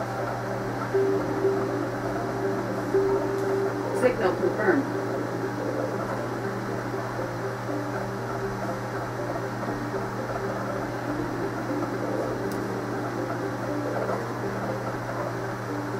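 Soft, steady electronic music hums from a television speaker.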